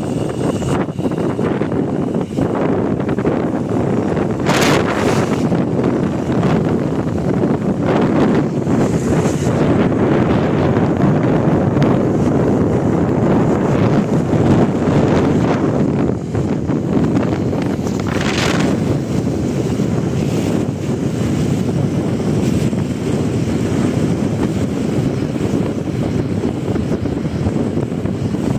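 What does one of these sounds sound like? Wind rushes and buffets loudly past a fast-moving vehicle.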